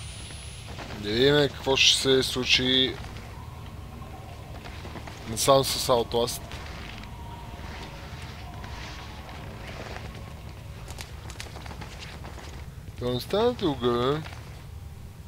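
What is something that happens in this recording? A young man talks close to a microphone in short bursts.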